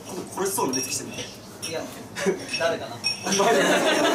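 A young man talks and laughs.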